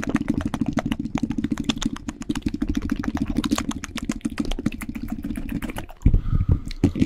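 A young man makes rapid mouth sounds close to a microphone.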